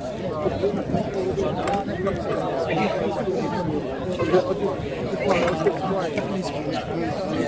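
A crowd of young men chatters nearby outdoors.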